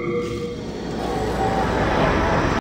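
A magical whoosh swells and shimmers.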